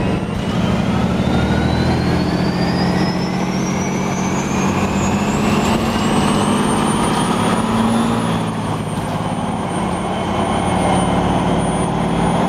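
A bus engine hums steadily and whines higher as the bus speeds up.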